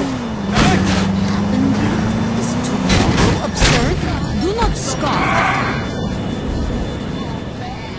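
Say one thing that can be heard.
A car engine hums.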